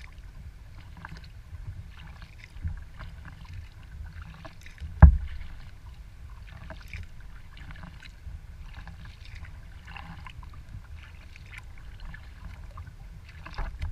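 Water laps and splashes against a kayak's hull as it glides.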